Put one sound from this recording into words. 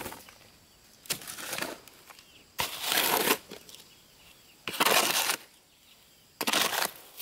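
A shovel scrapes and dumps gravel into a metal wheelbarrow.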